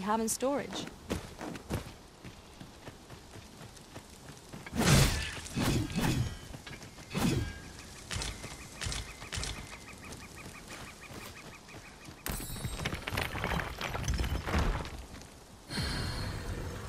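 Footsteps thud quickly on dirt.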